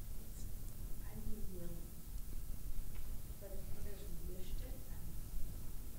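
A woman speaks quietly, heard from a distance.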